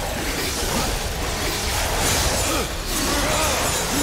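Skeletons shatter with clattering bones.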